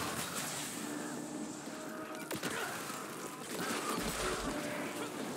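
Energy blasts and sword strikes crash during a video game fight.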